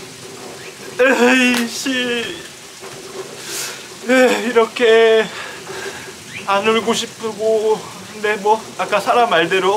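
A young man speaks in a tearful, shaky voice close by.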